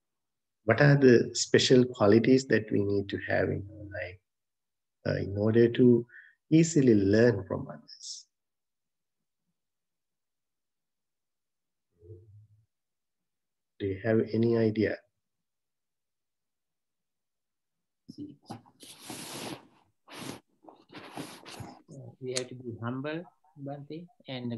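A man speaks calmly and slowly, close by, with long pauses.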